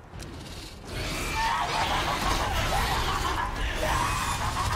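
A huge creature roars loudly close by.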